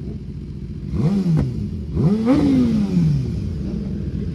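A motorcycle engine revs sharply and falls back twice.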